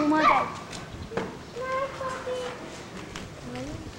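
A boy talks close by.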